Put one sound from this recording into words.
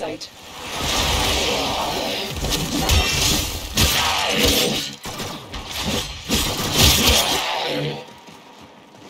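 Heavy blade strikes slam down with loud whooshing bursts.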